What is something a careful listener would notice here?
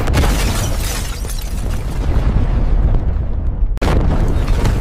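A huge explosion booms and rumbles with a deep roar.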